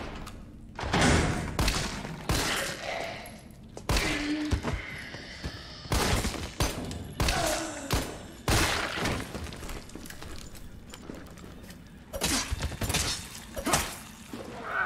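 Gunshots ring out in quick bursts.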